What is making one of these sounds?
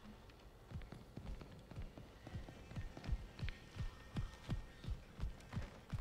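Heavy footsteps thud quickly across a wooden floor.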